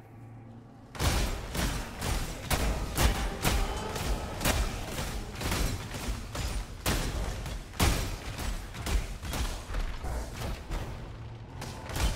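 Rapid spell bursts and hits clatter in a fierce fight.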